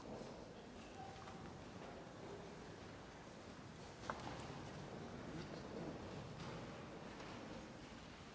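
Footsteps shuffle across a hard floor in a large echoing hall.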